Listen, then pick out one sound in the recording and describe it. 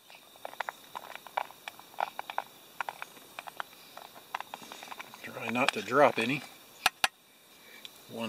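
A metal lid clinks onto a pot.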